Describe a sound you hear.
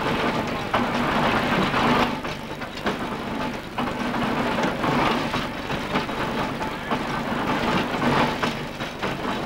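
An old threshing machine clatters and rumbles steadily.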